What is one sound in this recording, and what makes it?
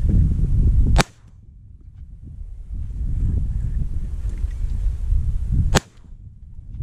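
A shotgun fires two loud shots outdoors.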